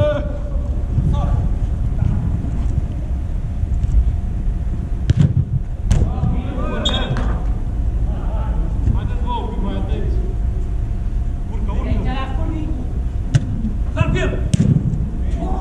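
Men shout to each other across a large echoing indoor pitch.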